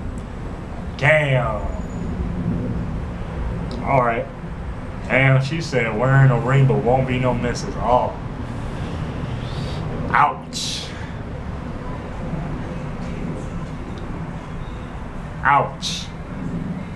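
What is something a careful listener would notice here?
A young man talks casually and laughs close by.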